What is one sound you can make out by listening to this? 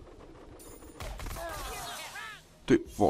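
A sharp cartoonish hit sound bursts out as a blow lands.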